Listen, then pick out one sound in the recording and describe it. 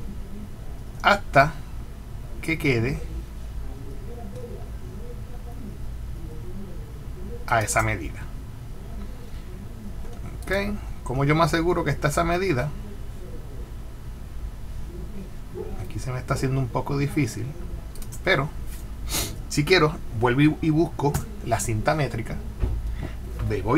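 A man talks calmly into a close microphone, in bursts with pauses.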